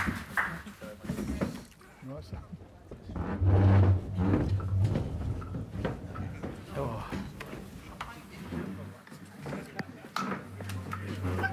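Several men talk and murmur in a room.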